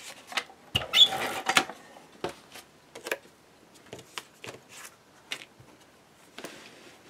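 Paper rustles and slides against card.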